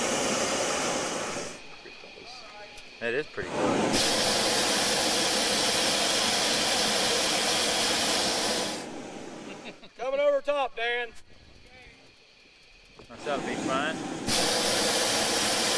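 A hot air balloon burner roars loudly in bursts.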